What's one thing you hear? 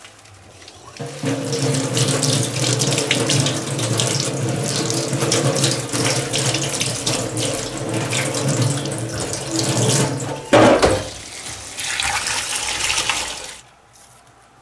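Tap water pours steadily into a metal sink.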